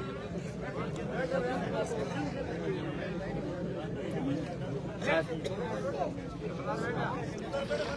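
An elderly man sings into a microphone, heard through a loudspeaker in a reverberant room.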